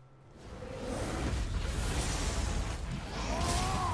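A heavy axe strikes with a loud crash.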